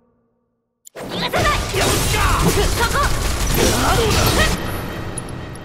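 Fiery explosions boom loudly.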